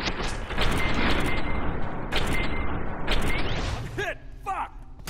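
A pistol fires rapid loud shots.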